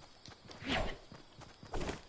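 A pickaxe swings and strikes.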